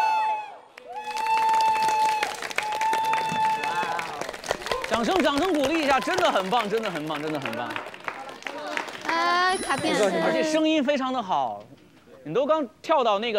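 A group of young men clap their hands.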